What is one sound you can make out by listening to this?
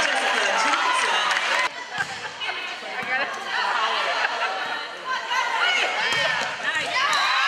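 Young women shout and cheer in a large echoing gym.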